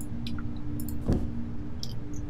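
A drawer slides open with a soft knock.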